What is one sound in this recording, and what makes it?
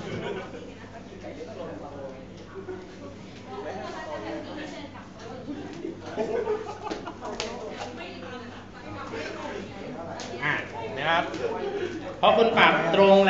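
Several people talk quietly nearby.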